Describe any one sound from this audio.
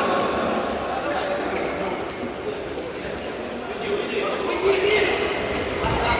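A futsal ball is kicked and dribbled across a hard court.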